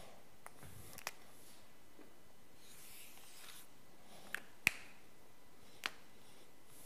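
A marker squeaks and taps on paper.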